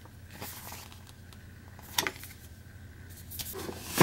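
Paper pages rustle and tap as a booklet is handled.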